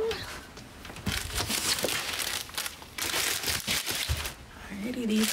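Plastic packaging rustles and crinkles.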